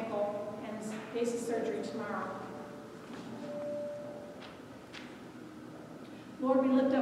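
A woman speaks into a microphone in an echoing hall.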